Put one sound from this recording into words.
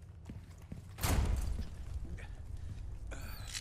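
A heavy wooden door creaks and bangs open.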